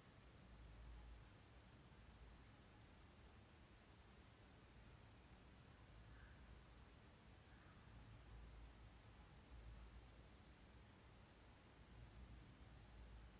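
A crochet hook softly scrapes and pulls yarn.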